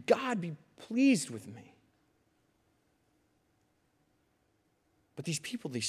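A young man speaks with animation into a microphone, pausing between phrases.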